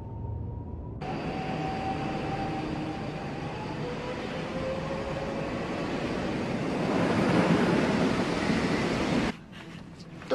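A train rushes past, its roar growing louder.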